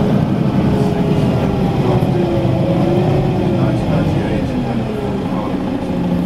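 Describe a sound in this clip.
A van drives past close by.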